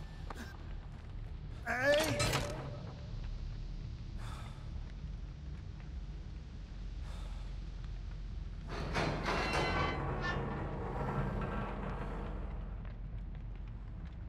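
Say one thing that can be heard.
A man pants and breathes heavily.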